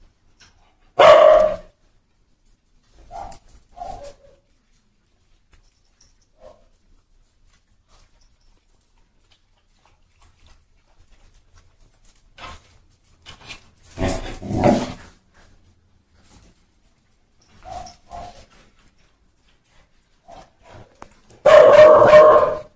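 Dogs bark loudly in short bursts, close by.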